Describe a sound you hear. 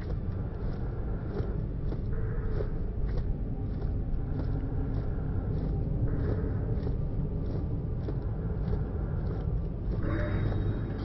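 Footsteps thud steadily on rocky ground.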